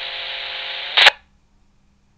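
A two-way radio squelch clicks off sharply.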